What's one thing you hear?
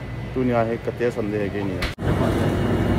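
A man speaks close by, with animation.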